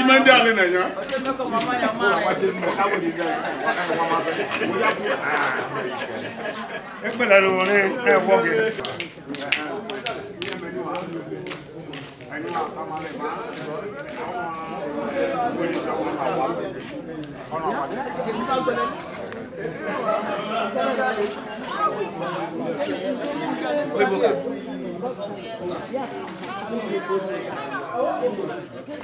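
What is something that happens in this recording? Men and women chat and murmur nearby in a group.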